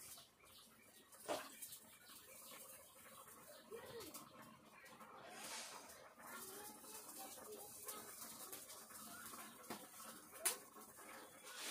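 Wood crackles in a cooking fire.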